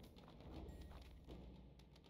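A magic spell bursts with a crackle.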